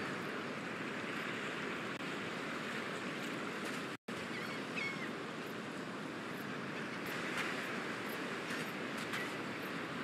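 Waves wash softly onto a sandy shore.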